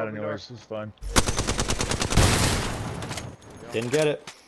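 Automatic gunfire rattles in a rapid burst.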